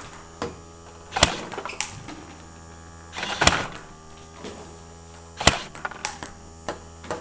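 Ping-pong balls click sharply against a paddle and a table.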